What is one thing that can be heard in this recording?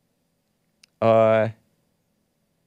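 A man says a single short word loudly into a close microphone.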